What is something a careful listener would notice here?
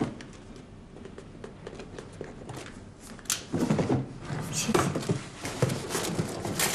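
A cardboard box rustles and bumps as it is handed over.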